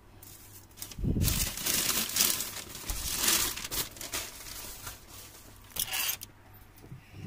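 Hands shuffle tools across a cloth, rustling and clattering softly.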